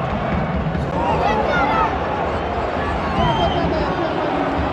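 A stadium crowd whistles shrilly.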